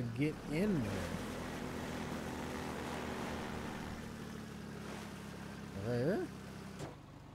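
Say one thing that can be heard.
An airboat engine revs up sharply.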